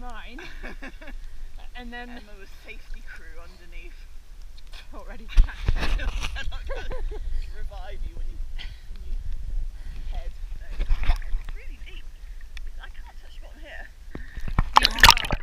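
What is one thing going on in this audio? Women talk and laugh with animation close by.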